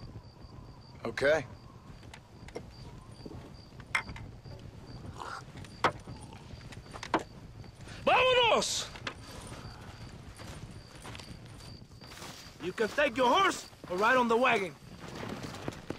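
A man answers in a low, gravelly voice.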